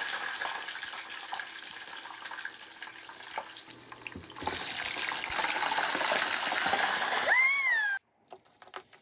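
Dumplings sizzle and crackle as they fry in hot oil.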